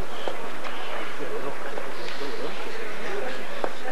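A small crowd of spectators murmurs outdoors.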